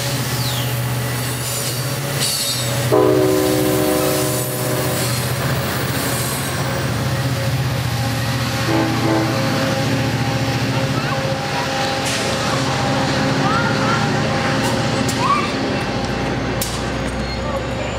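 A diesel engine hums steadily in the distance.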